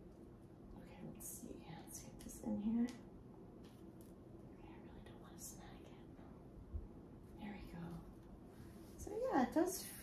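A woman murmurs softly close by.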